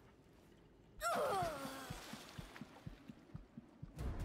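A blast bursts with a rushing whoosh.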